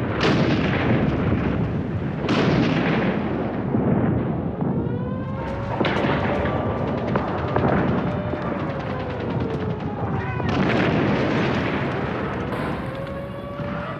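Heavy artillery guns fire with loud, echoing booms.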